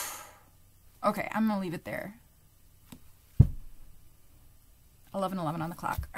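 A young woman speaks calmly and softly, close to a microphone, with pauses.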